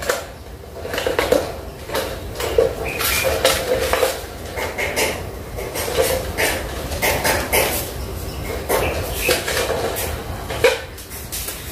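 Plastic bottles crinkle and tap against a wire mesh.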